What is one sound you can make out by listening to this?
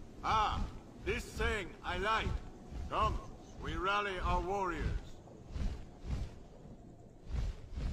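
Large wings beat heavily in flight.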